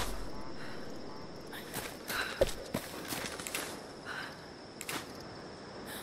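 A silenced pistol fires with soft pops.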